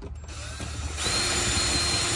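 A cordless drill whirs loudly.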